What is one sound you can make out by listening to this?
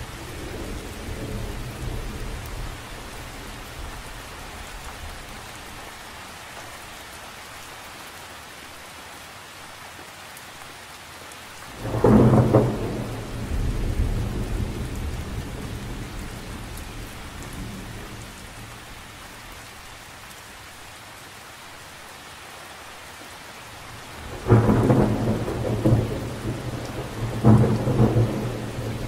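Rain patters steadily on the surface of a lake.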